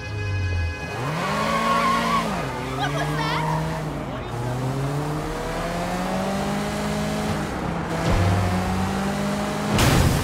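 A car engine revs and rises in pitch as the car speeds up through the gears.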